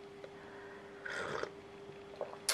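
A young woman sips a drink from a mug.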